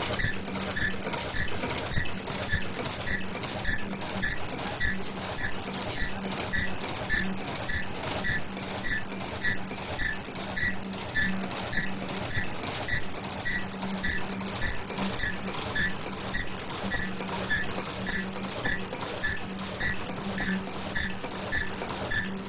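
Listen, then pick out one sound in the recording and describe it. An electric motor hums steadily.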